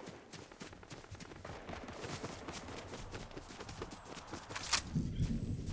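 Footsteps run on grass.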